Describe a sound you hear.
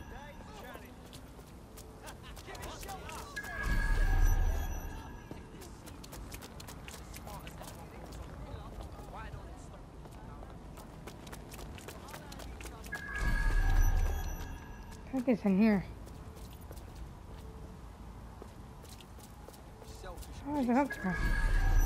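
Footsteps run quickly on a wet pavement.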